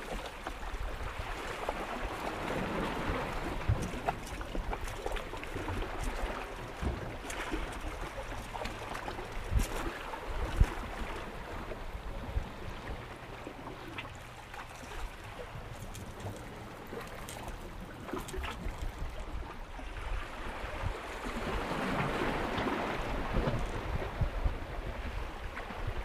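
Small waves wash and splash against rocks nearby.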